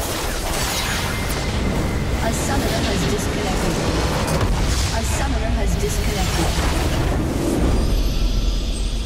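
A massive explosion booms and rumbles.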